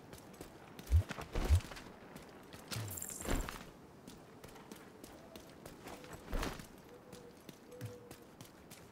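Heavy boots thud on hard ground as a runner vaults and runs.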